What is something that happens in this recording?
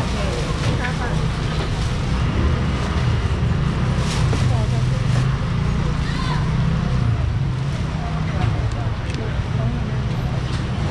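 A busy crowd of shoppers chatters all around.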